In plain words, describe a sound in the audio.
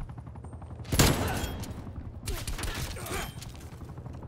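Gunshots crack in rapid bursts.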